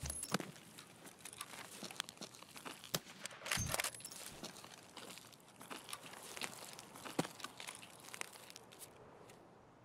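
Footsteps and gear rustle in quick bursts of clicks and knocks.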